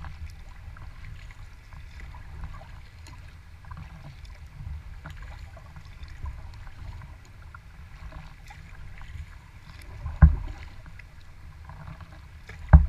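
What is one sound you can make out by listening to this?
Water laps and splashes against the hull of a kayak.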